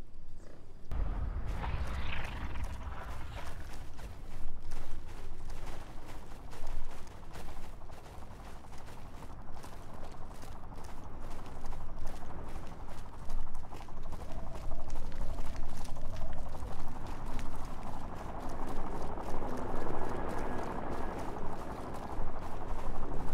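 Footsteps crunch steadily over snow and gravel.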